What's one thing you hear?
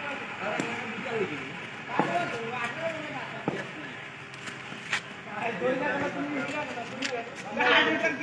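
Several men talk and shout outdoors.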